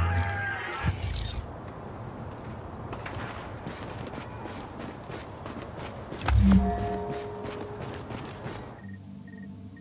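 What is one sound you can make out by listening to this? Boots crunch on snow with steady footsteps.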